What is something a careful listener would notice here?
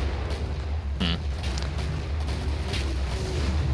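Handguns fire sharp shots.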